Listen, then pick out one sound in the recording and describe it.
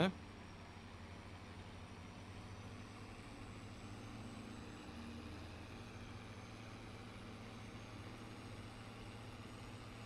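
Tyres crunch over a gravel track.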